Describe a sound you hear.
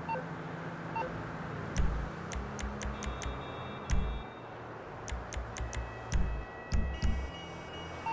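Soft electronic menu clicks and beeps sound in quick bursts.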